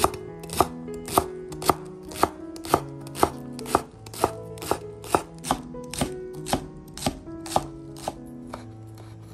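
A knife chops on a wooden board with steady, even knocks.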